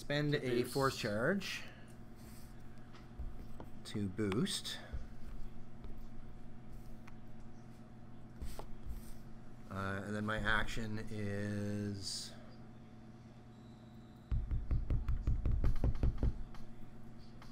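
Small plastic pieces tap softly on a table mat.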